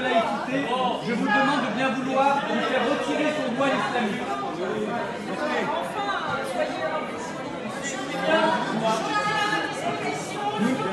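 A crowd of people murmur and call out.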